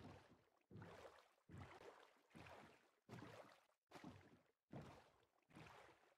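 Oars splash through water as a boat is rowed in a steady rhythm.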